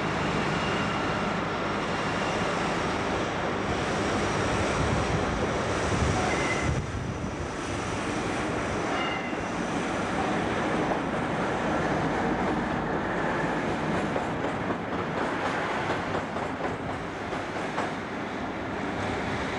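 A diesel locomotive engine rumbles and drones loudly as it pulls slowly past.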